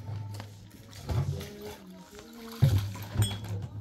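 Water pours from a jug into glasses.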